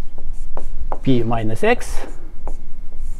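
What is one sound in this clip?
A man speaks briefly in a calm voice.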